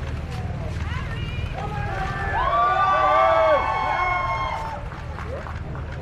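People in a crowd cheer and call out loudly.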